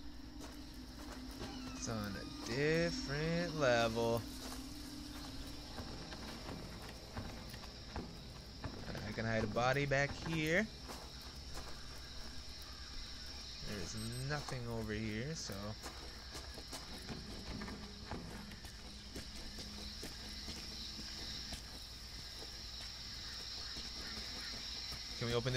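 Soft footsteps crunch slowly on dirt and gravel.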